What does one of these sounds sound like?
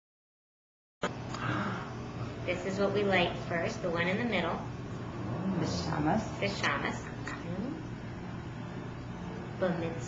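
A woman sings softly close by.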